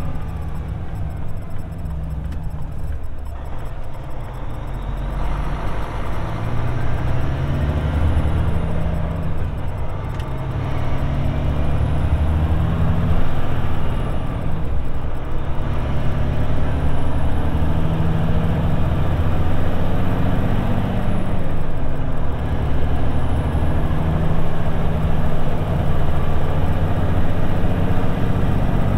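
Tyres roll over the road with a steady rumble.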